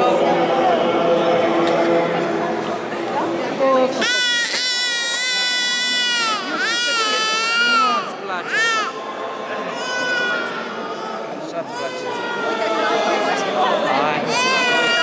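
A baby cries loudly in high, wailing bursts.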